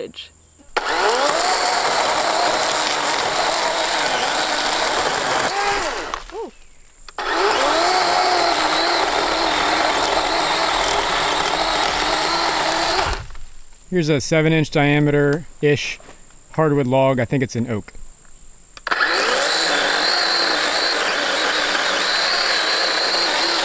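A chainsaw whines loudly as it cuts through wood, pausing now and then.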